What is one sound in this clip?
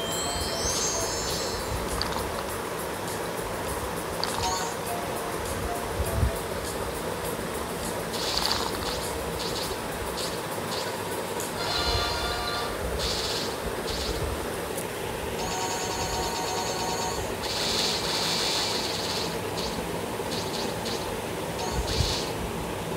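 Game chimes and sparkling effects ring out as fruit matches clear.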